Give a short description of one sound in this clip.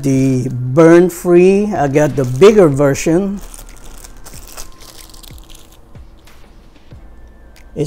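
A plastic bag crinkles in a man's hands.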